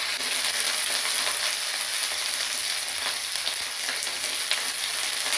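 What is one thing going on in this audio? Cauliflower sizzles and crackles in hot oil in a pan.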